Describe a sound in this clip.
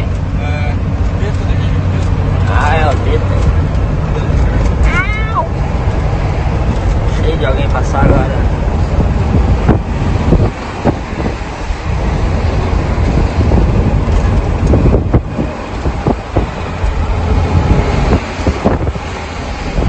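Tyres hum on the road at speed.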